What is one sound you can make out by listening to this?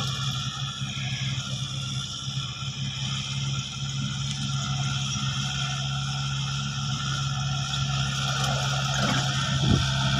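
A tractor engine drones steadily, growing louder as the tractor draws near.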